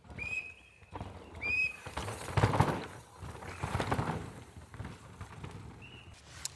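Bike tyres skid and crunch over loose dirt.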